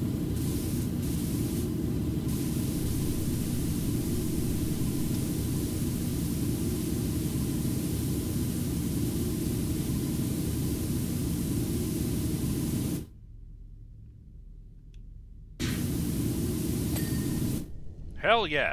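A pressure washer sprays water in a steady, loud hiss.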